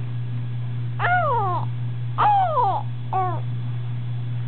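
A baby squeals and coos happily in short bursts, close by.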